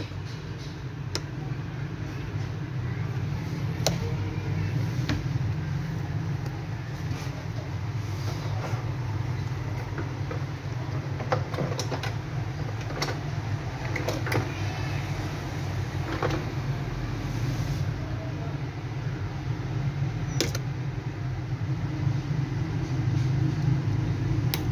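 Small metal parts click and tap against each other.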